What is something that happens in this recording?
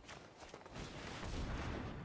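A magical whoosh sweeps past with a shimmering sparkle.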